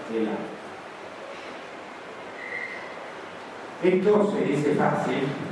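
An elderly man speaks calmly into a microphone through a loudspeaker in an echoing room.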